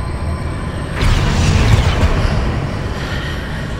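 A magical whoosh bursts out and slowly fades.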